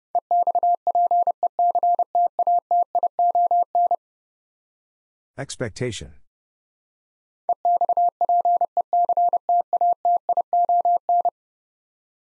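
A telegraph key taps out Morse code beeps at a fast pace.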